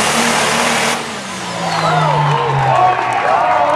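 A tractor engine winds down and slows to a low rumble.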